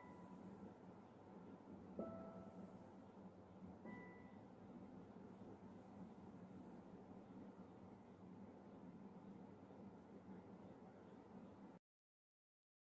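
A classical guitar is played softly, with plucked notes ringing out.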